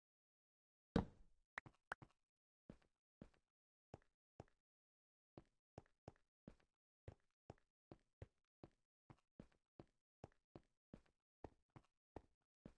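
Footsteps thud steadily on stone steps.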